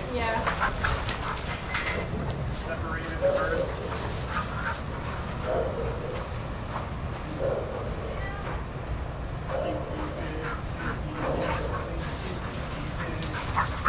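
Dogs bark in short bursts.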